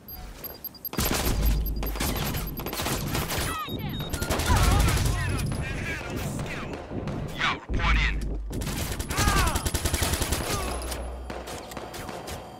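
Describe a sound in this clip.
Gunshots crack loudly in rapid bursts.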